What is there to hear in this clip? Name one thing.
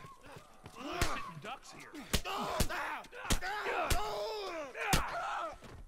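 Heavy punches thud against a body.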